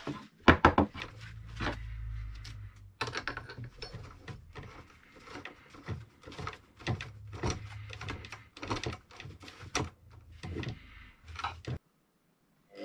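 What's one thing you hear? Metal clicks and rattles as a drill chuck is tightened with a key.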